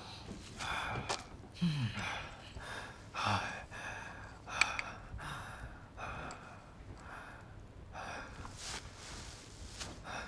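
A young man pants and gasps heavily.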